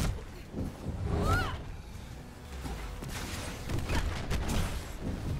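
Heavy impacts thud and boom.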